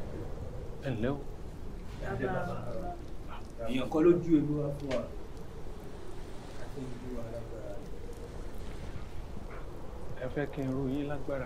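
A middle-aged man speaks calmly and firmly.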